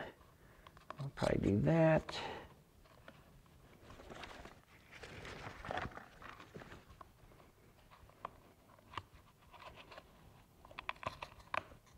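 A rubber mask rustles softly in gloved hands.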